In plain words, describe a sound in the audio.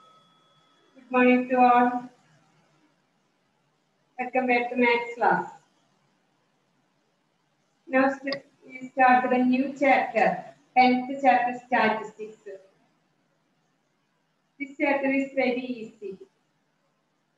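A young woman speaks calmly and clearly close by, with pauses between phrases.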